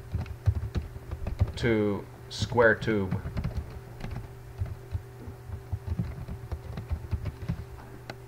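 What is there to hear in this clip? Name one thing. Keys clack on a keyboard as someone types.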